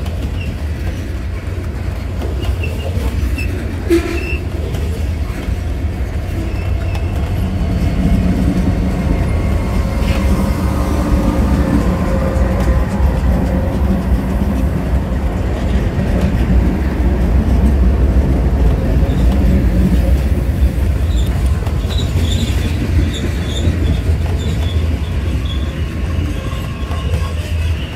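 A long freight train rumbles past close by, its wheels clattering on the rails.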